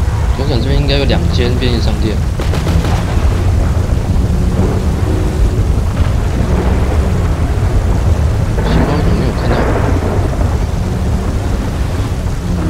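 A truck engine rumbles steadily as it drives along a road.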